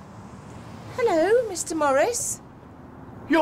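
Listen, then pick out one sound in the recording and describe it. A woman exclaims loudly nearby.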